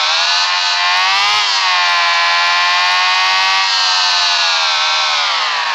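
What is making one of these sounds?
A motorcycle engine whines steadily at high revs, rising and falling slightly in pitch.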